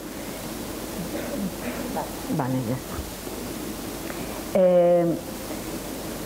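A woman vocalizes in short, expressive bursts, ending on a brief held note.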